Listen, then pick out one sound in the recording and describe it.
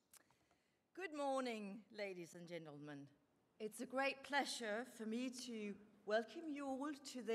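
A woman speaks with animation through a microphone.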